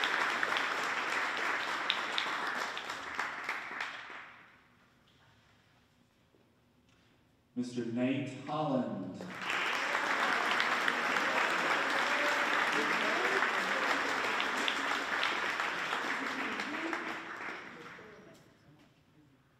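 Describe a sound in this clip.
People murmur and chatter in a large echoing hall.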